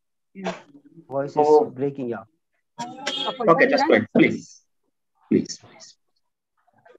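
A man speaks calmly through an online call, in short bursts with pauses.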